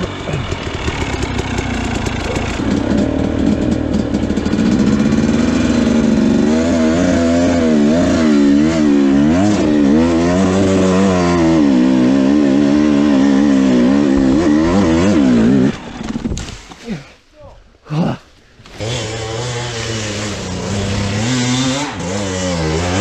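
A dirt bike engine revs up and down close by.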